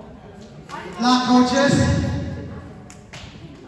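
A group of boys shouts a cheer together.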